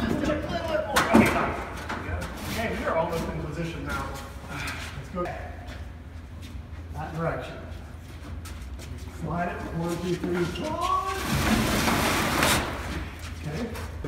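A heavy wooden staircase scrapes and thumps across the floor.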